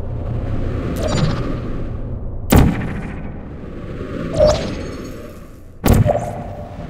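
A portal gun fires with a sharp electronic zap.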